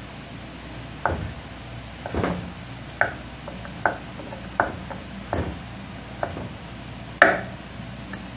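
A knife chops on a wooden board in sharp, regular knocks.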